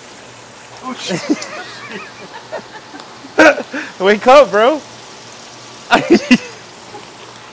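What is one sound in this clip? A second man laughs nearby.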